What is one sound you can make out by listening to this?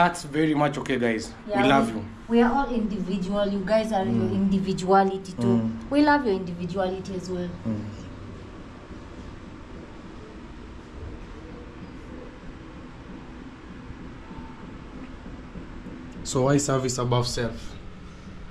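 A young man speaks close by, calmly.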